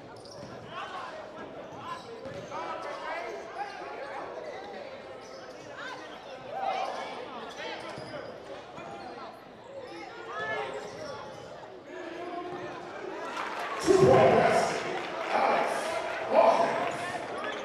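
Basketball shoes squeak on a hardwood court in a large echoing gym.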